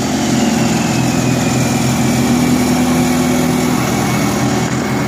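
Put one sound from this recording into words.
A diesel drag-racing pickup idles roughly.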